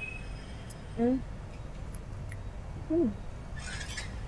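A young woman hums with pleasure while chewing.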